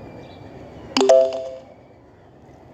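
A short bright chime rings out.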